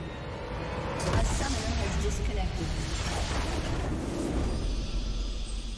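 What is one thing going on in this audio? A game's blast effect booms loudly with a deep rumble.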